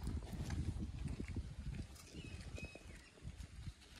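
A dog's paws rustle and crunch on dry grass and twigs.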